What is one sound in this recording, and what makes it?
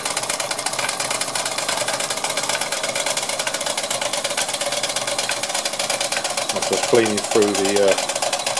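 A small model steam engine runs with a rapid, steady chuffing and ticking.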